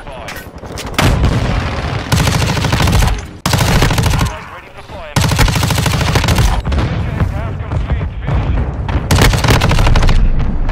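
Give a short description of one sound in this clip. An automatic gun fires rapid bursts.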